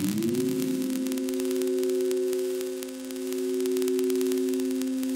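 A steady electronic chord glides up at first and then holds.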